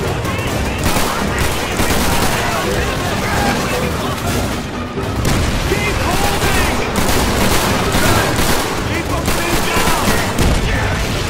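A rifle fires in loud, sharp bursts.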